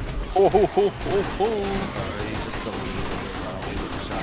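Zombies groan and snarl.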